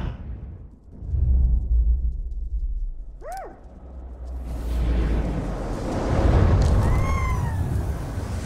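A huge explosion booms and rumbles deeply.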